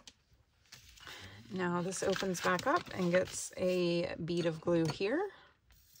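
Paper rustles and crinkles as it is folded and handled.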